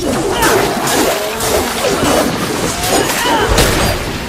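A whip cracks and slashes into a creature with a wet impact.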